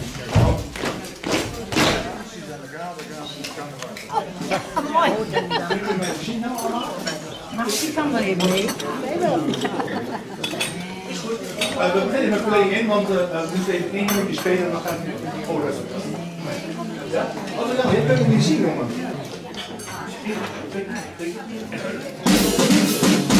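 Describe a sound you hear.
A brass band plays loudly in a room.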